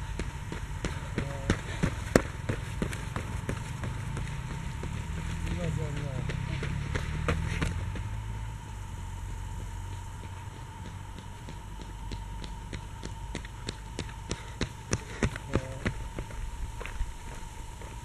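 Runners' footsteps slap on a paved road as they pass close by.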